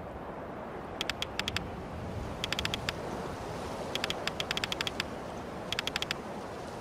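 Rapid game blips tick in short bursts.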